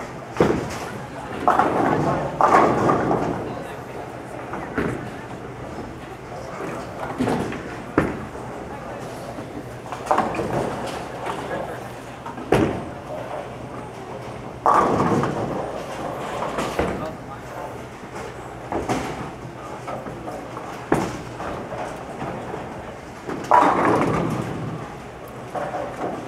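Bowling balls rumble down wooden lanes.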